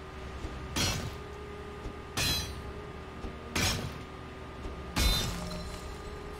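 Heavy blows strike with loud crashing thuds, one every second or so.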